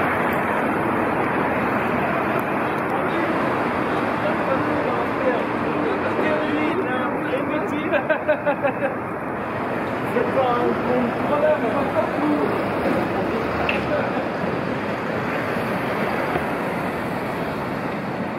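City traffic rumbles steadily along a busy street.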